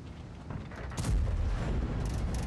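A tank shell explodes with a loud boom.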